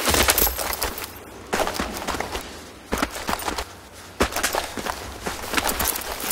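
Footsteps crunch quickly over gravel and rubble.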